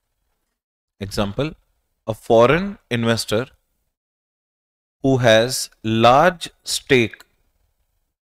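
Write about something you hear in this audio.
A man lectures into a close microphone in a calm, explaining voice.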